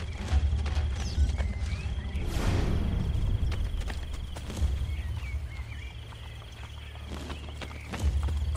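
Quick footsteps thud over hard ground.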